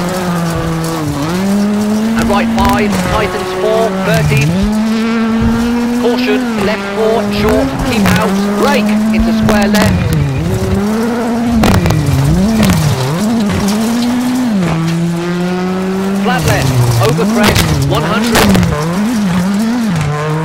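A rally car engine roars loudly, revving up and dropping with each gear change.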